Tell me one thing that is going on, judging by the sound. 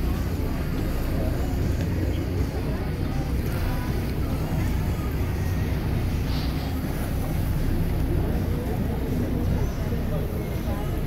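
Wind buffets the microphone steadily outdoors.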